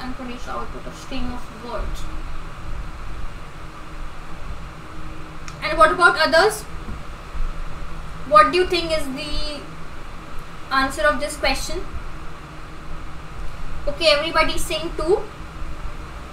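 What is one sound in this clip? A young woman speaks calmly into a close microphone, in short bursts with pauses.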